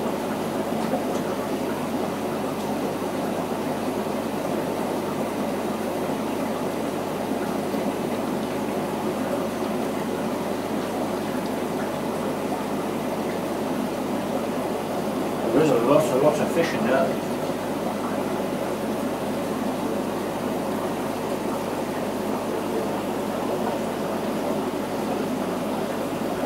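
Water from an aquarium filter outlet churns and bubbles at the surface.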